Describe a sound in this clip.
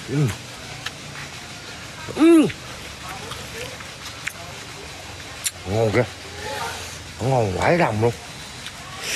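A man shouts loudly and excitedly close by.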